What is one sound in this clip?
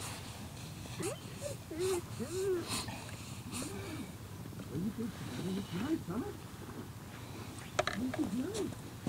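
A man talks calmly nearby outdoors.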